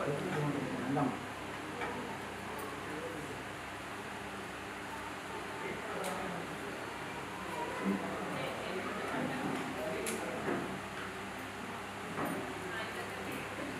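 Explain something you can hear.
A crowd of women and men murmur and talk quietly nearby.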